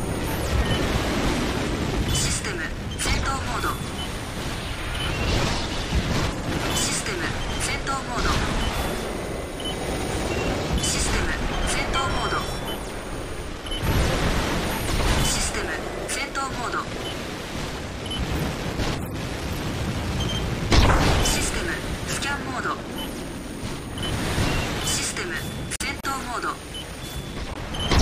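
Weapons fire in a video game.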